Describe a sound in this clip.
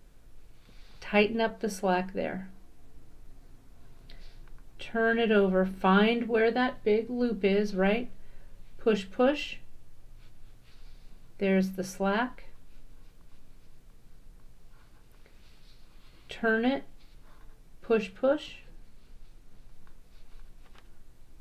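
A cord rustles softly as fingers tie a knot.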